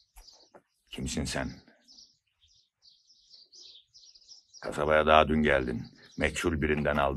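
An elderly man speaks loudly and forcefully nearby.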